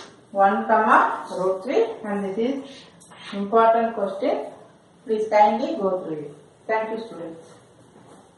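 A woman explains calmly and clearly, close by.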